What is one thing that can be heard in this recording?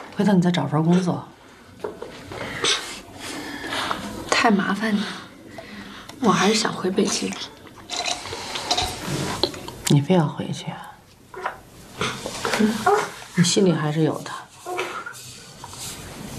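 A young woman speaks quietly and close by.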